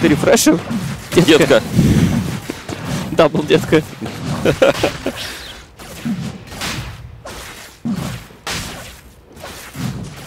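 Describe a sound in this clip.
Magic spells crackle and zap in a fight.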